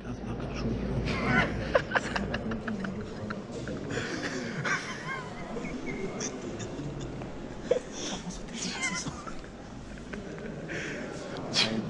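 Young men laugh close by.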